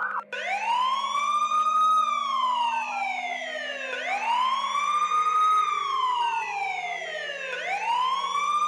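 A police siren wails, rising and falling in long sweeps.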